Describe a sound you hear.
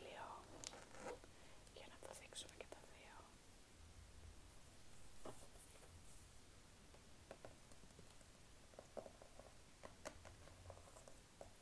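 A cardboard record sleeve rustles and taps as hands turn it over.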